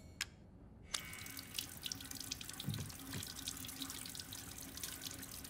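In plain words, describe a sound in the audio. Water runs from a tap and splashes into a sink.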